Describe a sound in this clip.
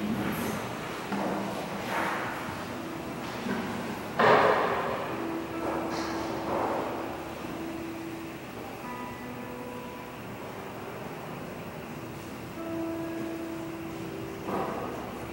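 A man speaks slowly and solemnly through a microphone in a large echoing hall.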